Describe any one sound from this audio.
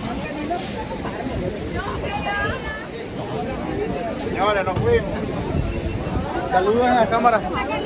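A man speaks close up.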